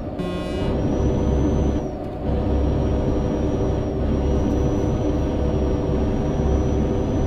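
A heavy diesel truck engine drones while cruising, heard from inside the cab.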